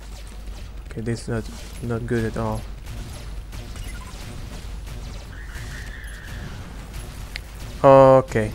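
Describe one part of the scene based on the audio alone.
Laser blasts zap and whine in quick bursts.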